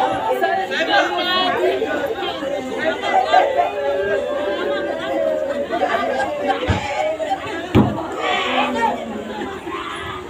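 A group of women wail and lament loudly nearby.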